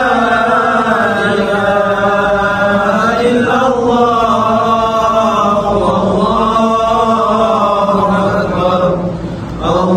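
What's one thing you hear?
A group of men chant together in unison, in a steady melodic drone.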